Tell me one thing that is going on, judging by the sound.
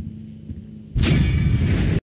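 A loud, bright musical fanfare bursts in and plays on.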